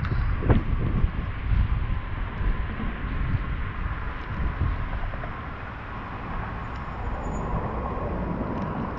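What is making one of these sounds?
Wind rumbles and buffets while riding a bicycle outdoors.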